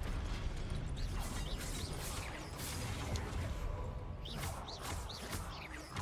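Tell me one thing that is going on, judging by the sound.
A magic bolt crackles and zaps.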